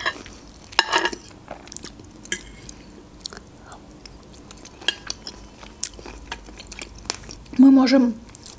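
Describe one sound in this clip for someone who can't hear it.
A young woman chews food with soft, wet mouth sounds close to a microphone.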